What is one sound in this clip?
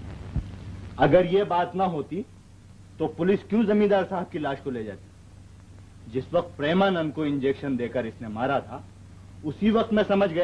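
An elderly man speaks slowly and gravely, close by.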